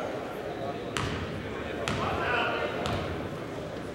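A basketball bounces sharply on a wooden floor several times.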